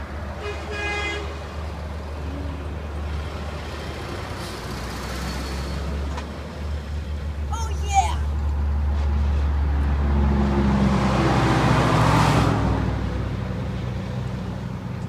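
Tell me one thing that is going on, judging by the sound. A heavy truck rumbles past loudly.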